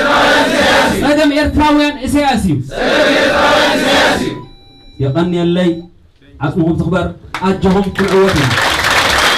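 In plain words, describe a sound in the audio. A large crowd of men and women chants loudly in unison.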